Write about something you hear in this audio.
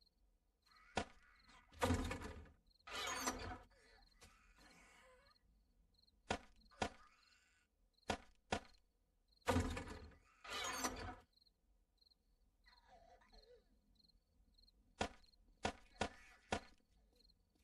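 Short, sharp clicks sound from a game menu as items are moved.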